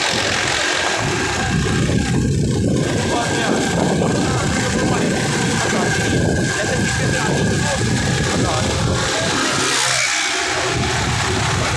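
Wind buffets the microphone loudly while riding outdoors.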